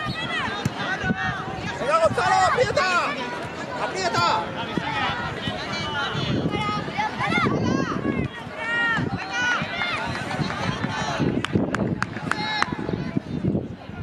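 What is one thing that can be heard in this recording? Children shout and call out loudly outdoors.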